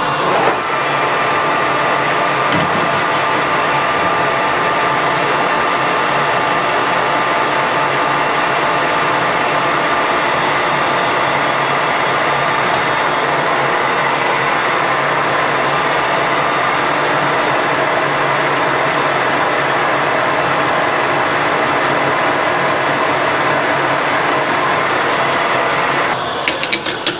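A lathe's cutting tool scrapes against spinning metal.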